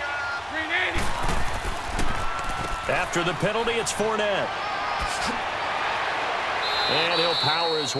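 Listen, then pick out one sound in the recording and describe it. Football players' pads thud and crack as they collide in a tackle.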